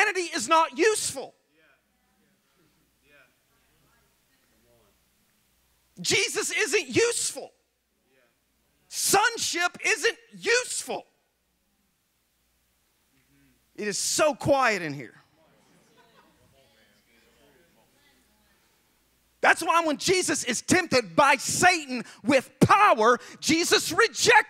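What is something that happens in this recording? A man speaks with animation through a microphone, pausing often.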